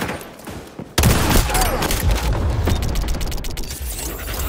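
Gunfire bursts loudly nearby.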